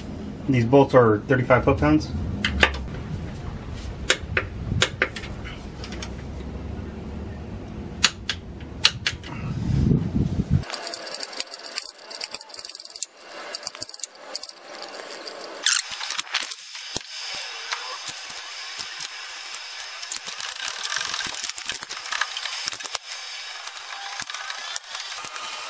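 Metal tools clink and knock against metal parts.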